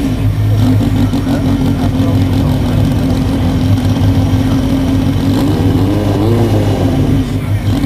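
A car engine idles loudly with a deep rumble, revving now and then.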